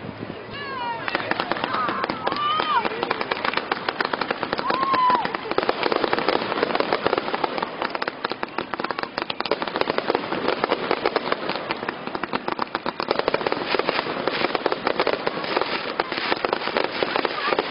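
Fireworks crackle as their sparks fall.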